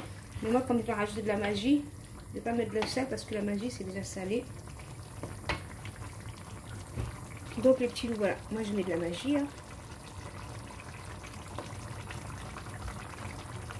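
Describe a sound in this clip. A spatula scrapes and knocks against a metal wok.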